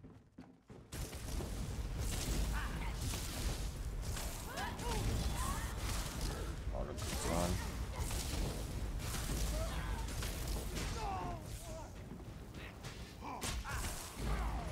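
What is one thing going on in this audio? Magical blasts crackle and roar in a game fight.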